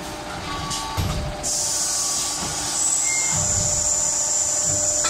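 A heavy press thuds as it closes.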